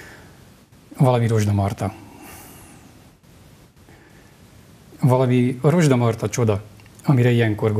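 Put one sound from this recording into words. A man reads aloud calmly into a close microphone.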